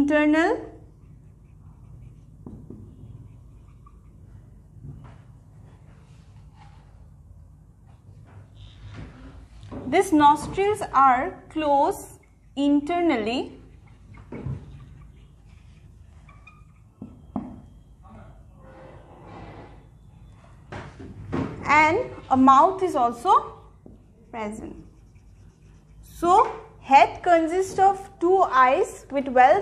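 A young woman speaks calmly, like a teacher explaining, close by.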